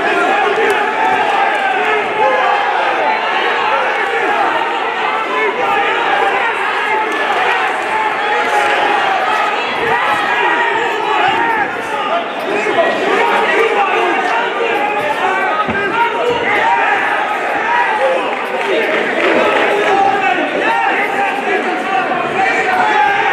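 Gloved punches thud against bodies.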